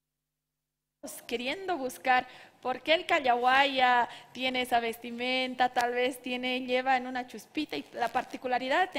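A woman speaks with animation into a microphone.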